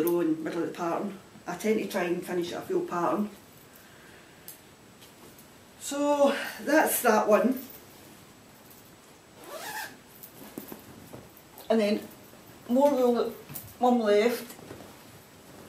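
A middle-aged woman talks calmly, close by.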